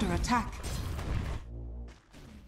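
A fiery spell bursts with a crackling whoosh.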